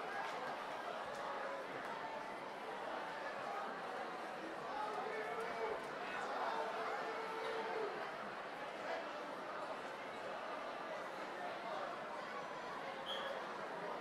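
A large brass band plays loudly in a big echoing hall.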